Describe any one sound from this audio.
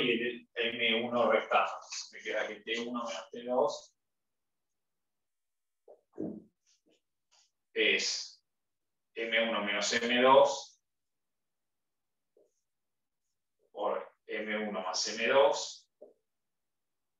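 A man speaks calmly and clearly, close by, in short phrases with pauses.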